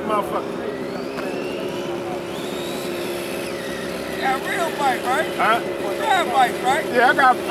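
A toy motorbike's small electric motor whines steadily, its pitch rising and falling.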